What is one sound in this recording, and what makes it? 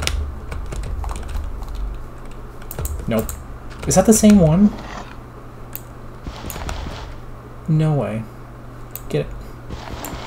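Dirt crunches as it is dug.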